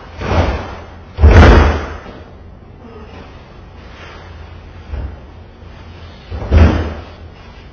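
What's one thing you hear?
A trash bin lid bangs shut.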